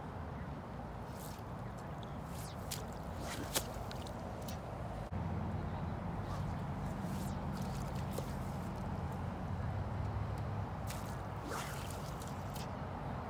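A fishing line swishes through the air.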